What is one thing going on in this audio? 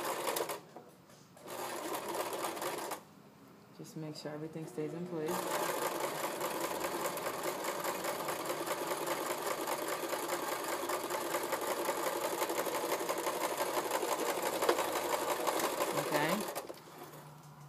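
A sewing machine whirs rapidly in short bursts, then in a long steady run.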